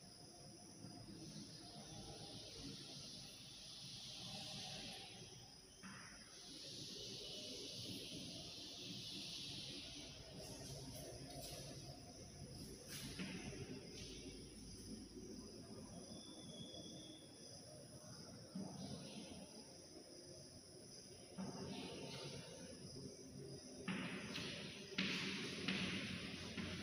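Chalk scrapes and squeaks on a board.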